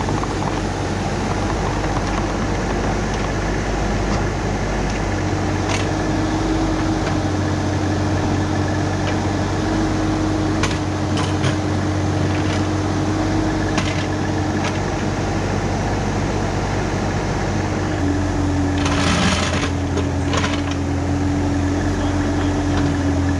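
A small excavator's diesel engine rumbles steadily and whines under load.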